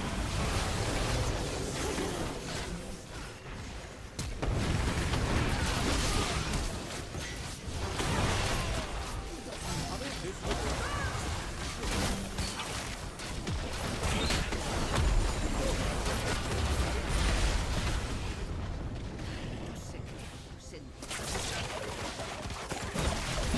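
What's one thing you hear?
Game spell effects crackle, whoosh and boom in a fast battle.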